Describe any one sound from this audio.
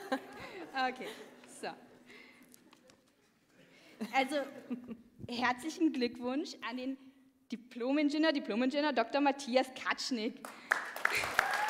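A young woman speaks cheerfully through a microphone in a large hall.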